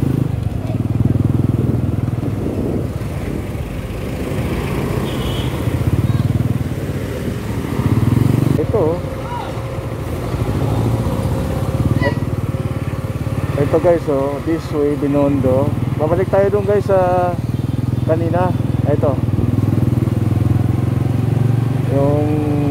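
Vehicle engines rumble steadily in nearby street traffic.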